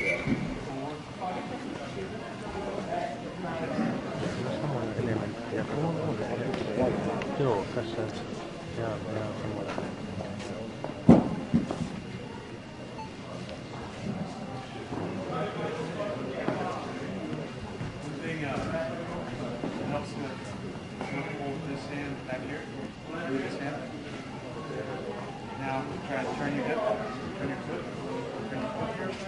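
A man talks calmly, instructing, in a large echoing hall.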